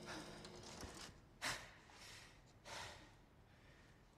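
A young man gasps and breathes heavily close by.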